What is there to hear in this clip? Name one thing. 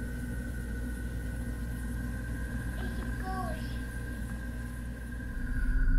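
A small child babbles softly close by.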